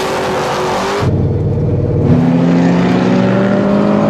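An engine roars from inside a car as it speeds up.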